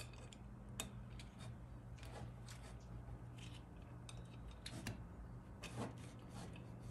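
Gloved hands handle a metal plate with light scraping and clicking sounds.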